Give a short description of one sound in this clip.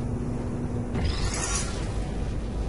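A heavy metal door slides shut with a sharp whoosh.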